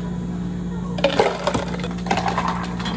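A plastic lid crinkles and snaps onto a cup.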